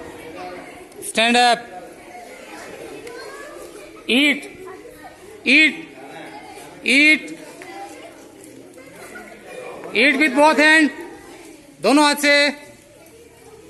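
A large group of young children shout out together in loud, short bursts outdoors.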